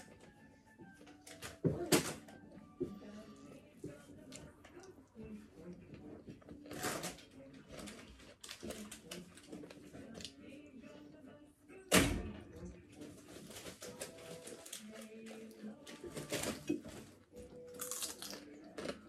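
A young woman chews food, smacking close up.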